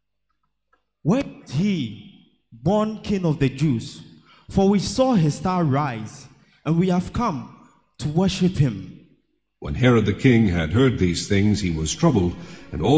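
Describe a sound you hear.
A man speaks loudly and with feeling through a microphone, in an echoing hall.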